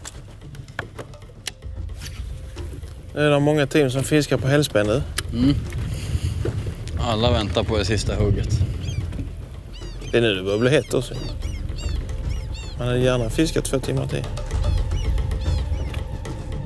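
Water laps against the hull of a boat.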